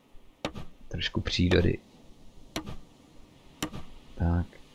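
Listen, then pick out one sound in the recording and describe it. A wooden hammer knocks on wooden planks.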